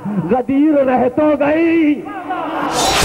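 A man chants loudly and melodiously through a microphone.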